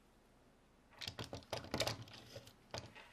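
Small clicks and taps come from hands handling a plastic circuit board.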